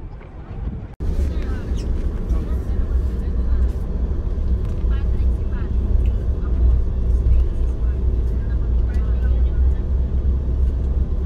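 A car rumbles steadily along a road.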